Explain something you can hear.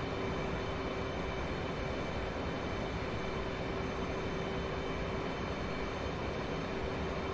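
Rushing wind noise fills the cockpit.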